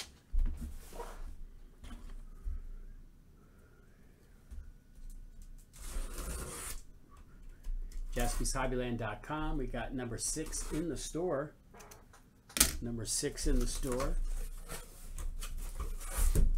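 A cardboard box rustles and scrapes as a hand handles it.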